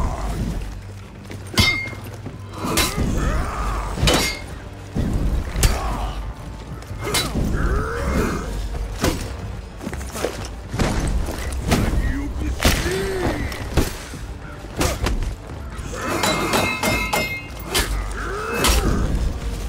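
Men grunt and yell with effort as they fight.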